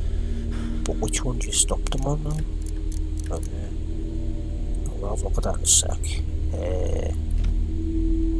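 A young man talks calmly close to a microphone.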